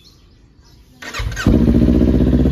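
A motorcycle engine cranks and fires up.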